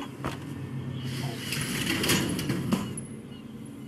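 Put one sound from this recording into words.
A wooden door scrapes and creaks open.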